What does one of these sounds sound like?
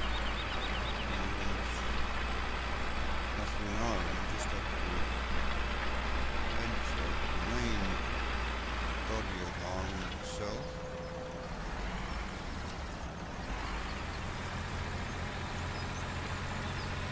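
A disc harrow rattles over soil.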